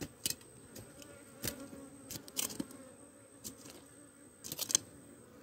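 A blade scrapes and digs into dry soil.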